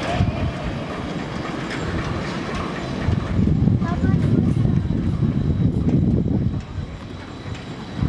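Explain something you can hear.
A suspended ferry gondola hums as it glides across the water.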